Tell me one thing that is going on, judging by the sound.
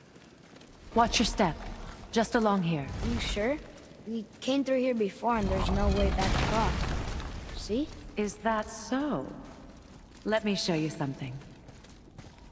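A boy speaks with animation.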